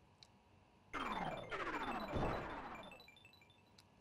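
A video game sound effect sweeps downward in pitch.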